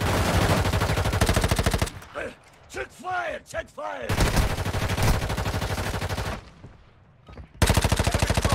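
Rapid automatic gunfire rattles loudly in bursts.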